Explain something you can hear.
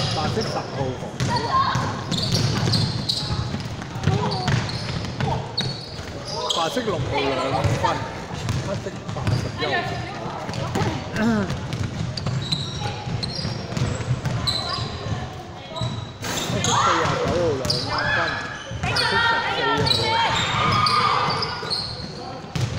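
Sneakers squeak on a hardwood floor in a large echoing hall.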